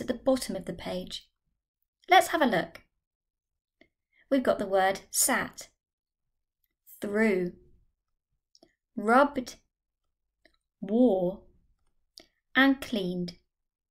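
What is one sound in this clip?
A young woman speaks clearly and slowly through a microphone, reading out words one by one with pauses.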